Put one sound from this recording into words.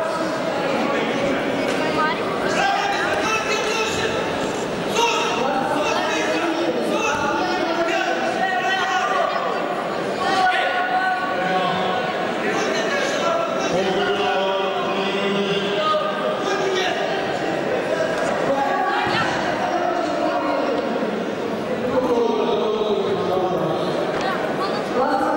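A crowd of spectators shouts and chatters in a large echoing hall.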